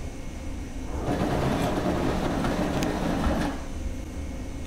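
Metal elevator doors slide open with a rumbling hiss.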